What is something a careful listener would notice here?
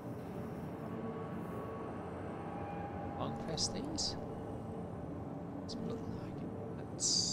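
A spacecraft's engine hums low and steady.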